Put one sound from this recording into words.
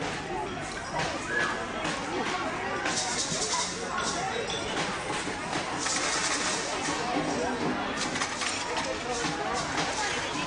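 Steel drums clink and ring as they are handled.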